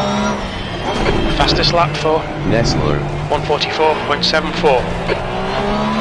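Tyres squeal through tight corners.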